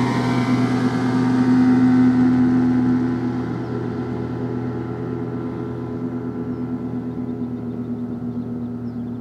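A motorboat engine drones across the water and slowly fades.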